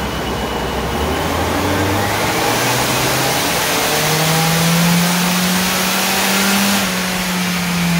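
A turbocharged four-cylinder car engine revs up under load on a chassis dyno.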